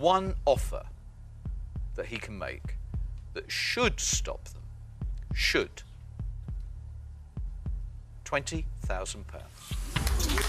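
A man speaks in short bursts with pauses, heard through a microphone.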